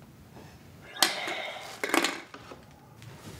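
A woman breathes in hard through a tube.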